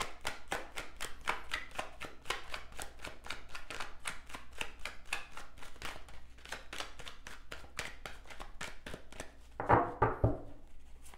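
Playing cards riffle and slap rapidly while being shuffled close to a microphone.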